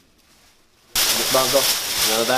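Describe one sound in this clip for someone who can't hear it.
A foil blanket crinkles and rustles loudly.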